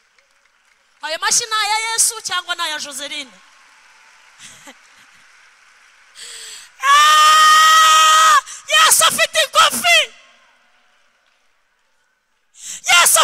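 A woman speaks with animation through a microphone in an echoing hall.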